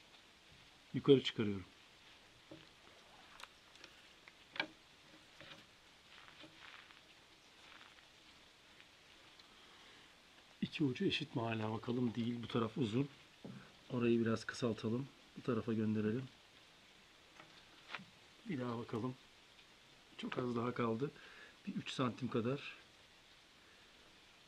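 Cord rustles softly as hands tie a knot.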